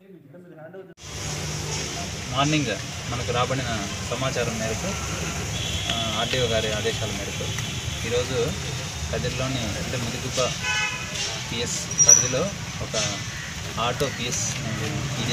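A man speaks steadily, close and clear.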